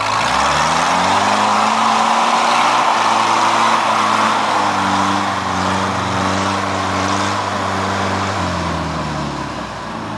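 An off-road jeep engine revs under load, climbing a dirt slope.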